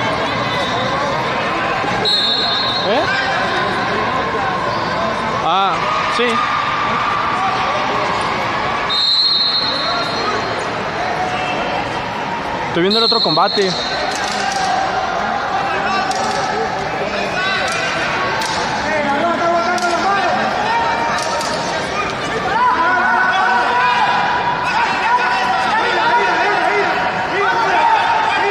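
A crowd of people shouts and cheers in a large echoing hall.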